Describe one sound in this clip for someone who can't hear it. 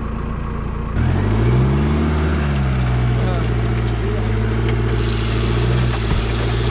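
A vehicle engine rumbles nearby, briefly revs up, then settles into a steady low idle.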